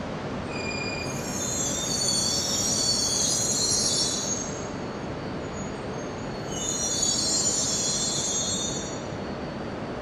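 Train wheels squeal shrilly in two bursts.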